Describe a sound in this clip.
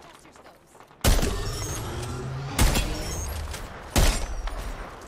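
A rifle fires loud, booming shots that echo.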